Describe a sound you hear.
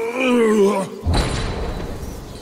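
A heavy body crashes to the ground with a loud boom.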